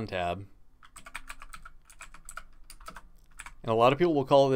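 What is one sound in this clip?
Keys clack quickly on a computer keyboard.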